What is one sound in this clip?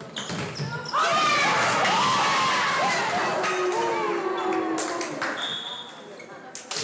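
Young women on a bench cheer and shout loudly.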